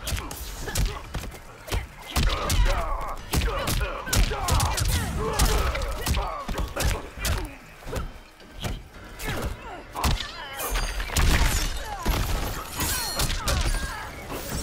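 Heavy punches and kicks land with loud thuds and cracks.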